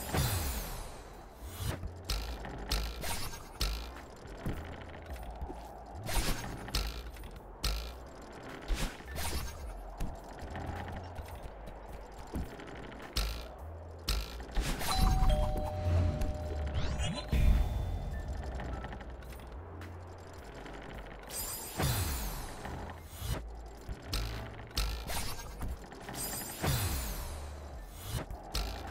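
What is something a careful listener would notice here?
Quick whooshing game sound effects go off again and again as a small figure jumps and dashes.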